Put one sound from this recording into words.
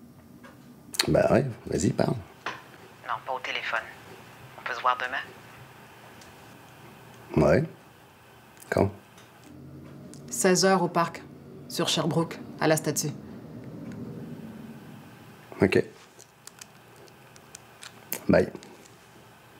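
A man speaks calmly and briefly on a phone, close by.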